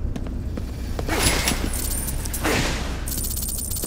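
Metal objects clatter and bang as they are knocked over.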